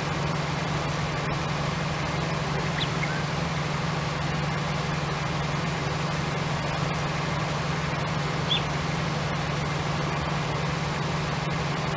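A harvester rattles as it digs up crops.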